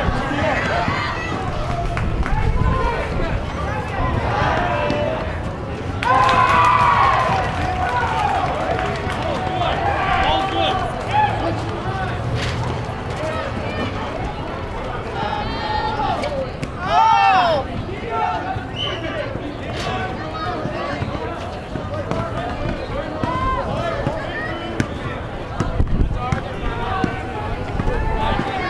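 A crowd of people chatters outdoors throughout.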